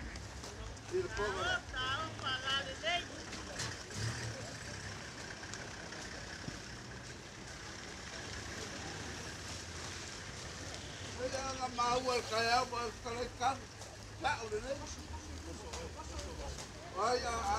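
An elderly man calls out loudly through a microphone, in bursts.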